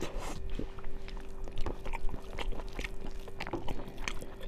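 Fingers squish and mix soft rice close to a microphone.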